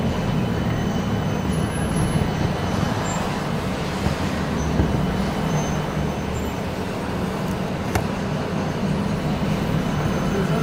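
A vehicle's engine rumbles steadily from inside while driving in traffic.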